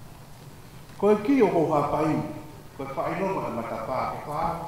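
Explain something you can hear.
A man speaks loudly into a microphone through a loudspeaker, reading out.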